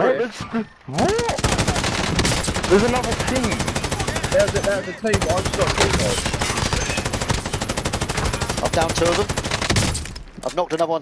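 A machine gun fires long, rapid bursts.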